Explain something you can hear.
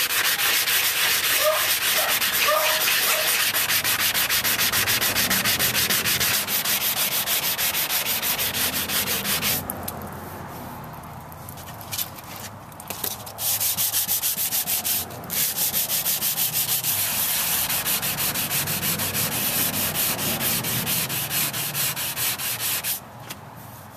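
A hand rubs an abrasive pad rapidly back and forth over a metal panel.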